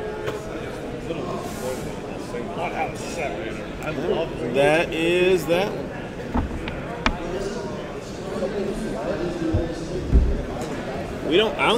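Men chatter in the background of a busy hall.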